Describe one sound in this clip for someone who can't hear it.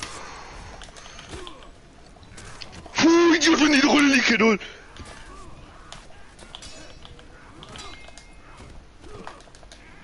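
Steel swords clash and ring in a fight.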